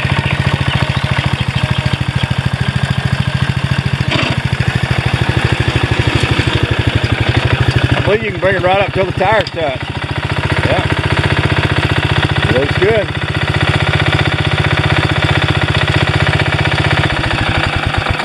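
An engine idles close by with a steady, rapid chugging.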